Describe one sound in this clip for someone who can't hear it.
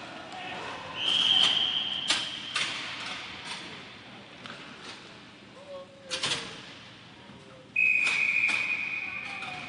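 A referee's whistle blows sharply, twice.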